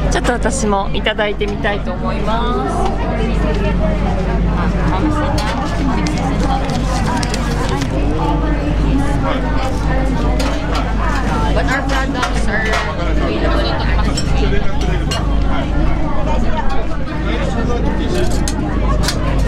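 Women and men chatter all around in a busy crowd.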